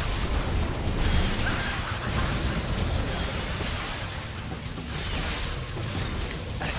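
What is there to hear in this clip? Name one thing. Magic blasts crackle and explode during a fight.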